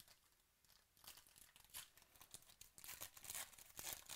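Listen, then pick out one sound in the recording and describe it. Foil wrapping crinkles and tears as a pack is opened.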